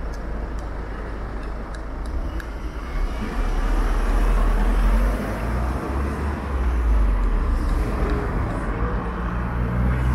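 A motorcycle engine idles and rumbles up close.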